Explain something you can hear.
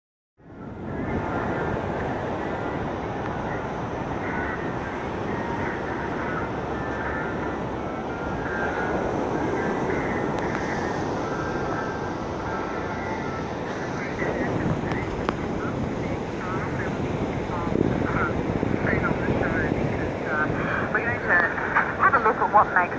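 A portable radio hisses with static.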